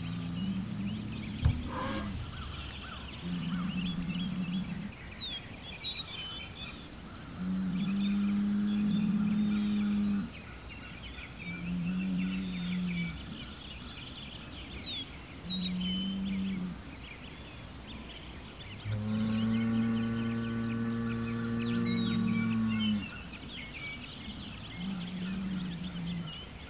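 A bull lows deeply and repeatedly, close by.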